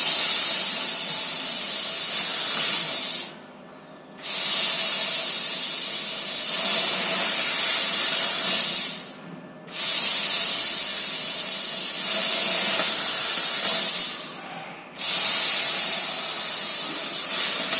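A hot air nozzle blows with a loud, steady hiss that stops briefly three times.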